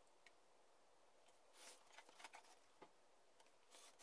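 A pencil scratches along a ruler on paper.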